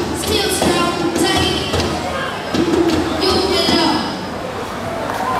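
A young girl speaks clearly into a microphone, heard over loudspeakers in a large hall.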